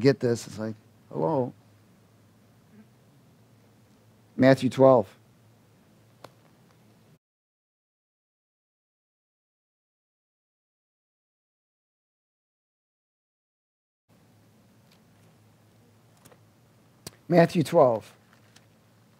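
A man speaks calmly into a headset microphone in short phrases.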